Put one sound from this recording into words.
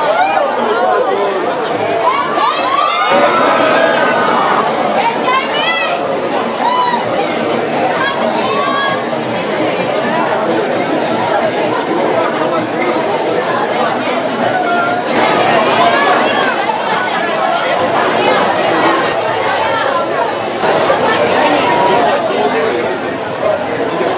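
A large crowd chatters and cheers loudly outdoors.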